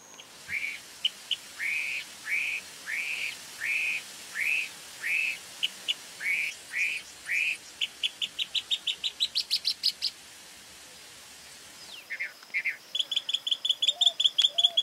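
A mockingbird sings a varied song of repeated whistled and chattering phrases.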